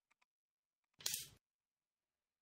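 A game piece snaps down sharply onto a wooden board.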